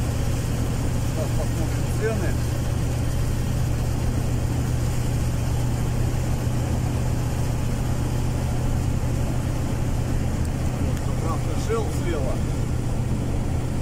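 A vehicle's engine drones steadily while driving along a road.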